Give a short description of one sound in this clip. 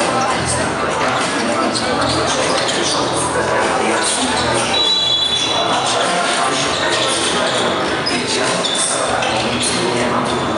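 A crowd of spectators murmurs and chatters.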